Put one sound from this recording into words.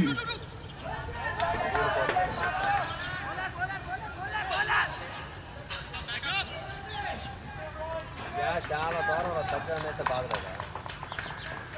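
Men on the field shout and call out to each other from a distance, outdoors.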